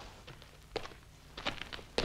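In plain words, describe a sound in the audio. Boots crunch on gravel as two men walk.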